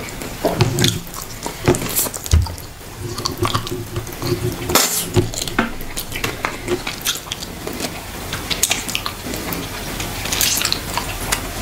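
A young man sucks and slurps sauce from his fingers.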